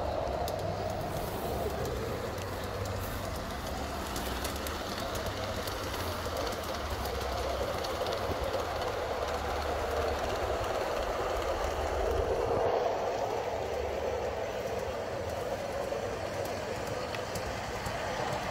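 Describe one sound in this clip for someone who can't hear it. A model train hums and rattles along its tracks.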